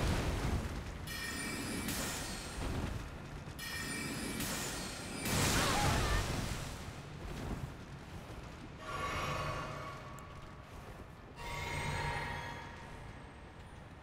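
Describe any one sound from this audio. Magic shimmers with bright chiming tones.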